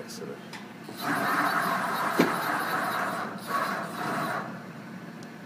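A machine's table slides along with a whirring hum.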